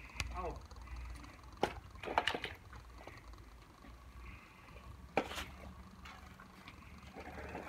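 A child splashes and plays with water.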